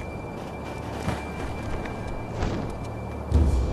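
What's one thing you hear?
A figure scrambles up onto a tiled roof with a soft thud.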